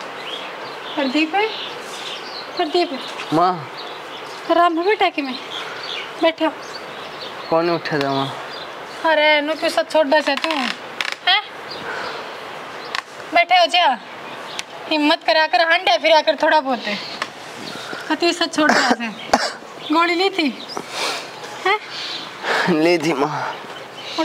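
A young woman speaks gently, close by.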